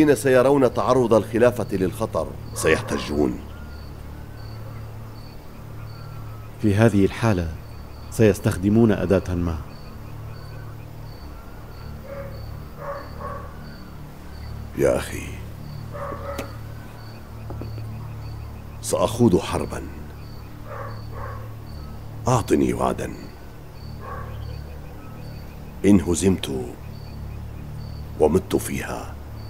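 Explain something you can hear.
A middle-aged man speaks in a low, stern voice, close by.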